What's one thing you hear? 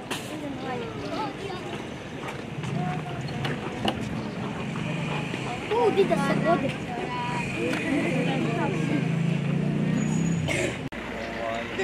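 Children chatter and talk nearby outdoors.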